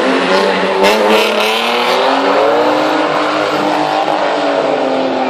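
Car engines roar loudly, revving up and down.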